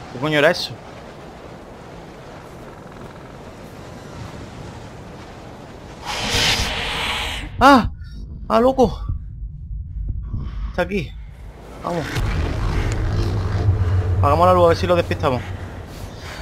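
A young man exclaims loudly into a microphone in short bursts.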